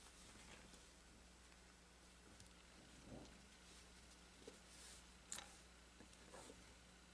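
Fabric rustles softly as hands fold and gather it.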